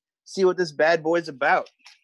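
Scissors snip at paper.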